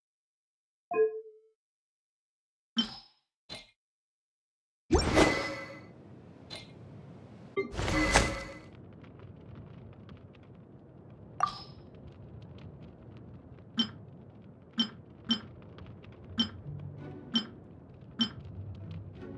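Short game menu clicks and chimes sound as options are selected.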